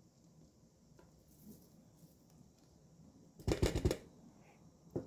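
A scoop of powder spills and patters onto dry grains.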